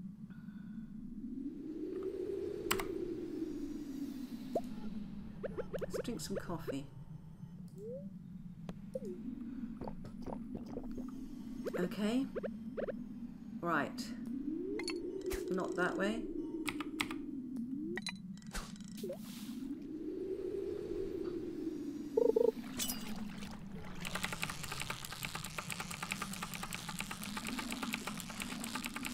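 Slow, wavering electronic game music plays throughout.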